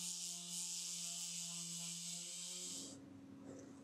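An electric sander whirs loudly against wood.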